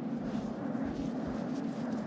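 A young woman gasps and breathes nervously close by.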